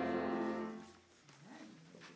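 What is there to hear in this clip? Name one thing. A choir of men and women sings together and the last chord fades out.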